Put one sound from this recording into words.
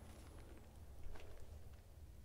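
A book thumps open.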